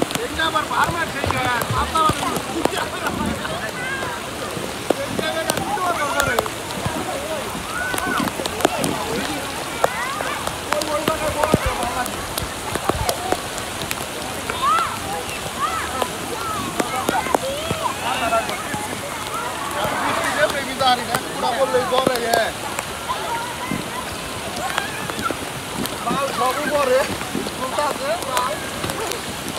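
Water splashes and laps as people float and wade in a pool.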